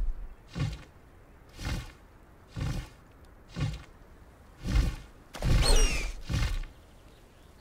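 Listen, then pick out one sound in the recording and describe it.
Large wings beat in slow, heavy flaps.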